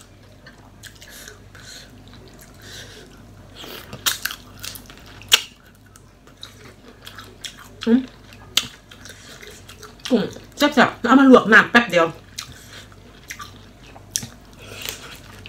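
A young woman chews and smacks her lips loudly.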